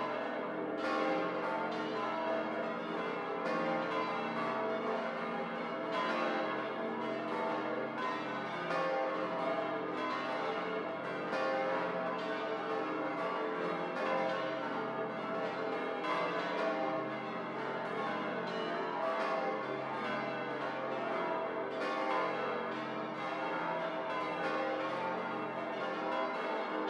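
Church bells peal loudly and continuously, ringing out with a long echo.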